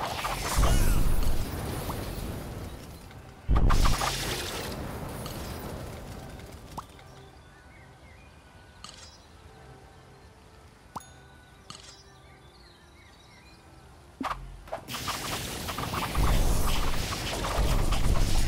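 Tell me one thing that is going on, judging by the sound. Strategy game battle effects clash and crackle.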